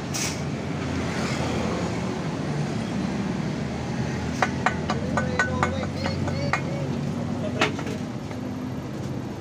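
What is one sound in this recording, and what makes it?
A power tool hums steadily.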